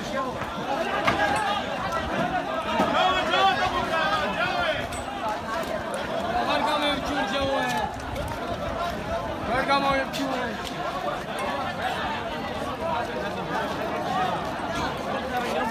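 A crowd of young men shout and talk excitedly outdoors.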